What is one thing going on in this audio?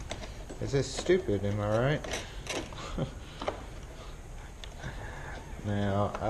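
A screwdriver scrapes and turns screws in a metal door latch.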